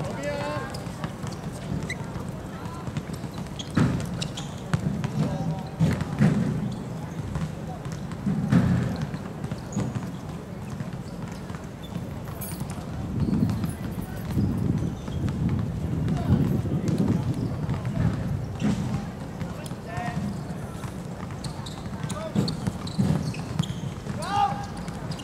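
Young men shout to each other across an open outdoor court.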